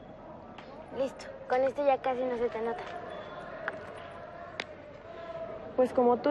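A teenage girl answers in a sulky voice.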